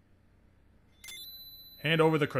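A short electronic chime rings as a message pops up.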